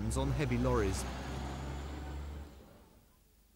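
A van drives past close by with a low engine rumble.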